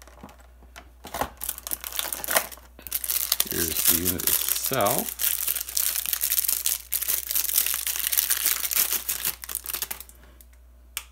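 Plastic wrapping crinkles and rustles up close.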